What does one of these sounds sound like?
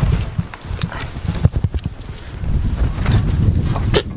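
A wooden gate knocks and rattles.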